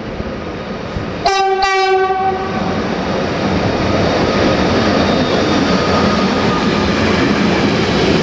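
A long freight train rumbles past on the rails, growing louder.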